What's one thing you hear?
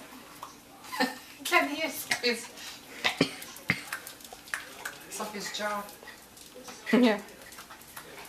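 A small dog barks and yips excitedly.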